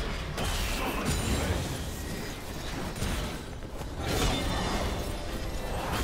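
Magic spells burst and crackle in a rapid game battle.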